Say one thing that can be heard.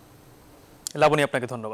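A man begins speaking calmly through a microphone.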